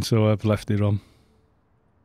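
A man speaks loudly and with animation close to a microphone.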